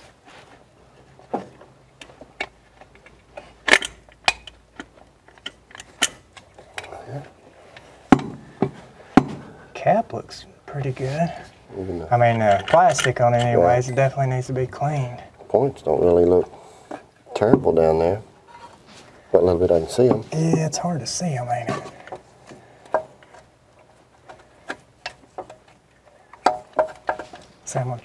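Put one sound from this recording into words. Small metal parts click and tap as an engine is worked on.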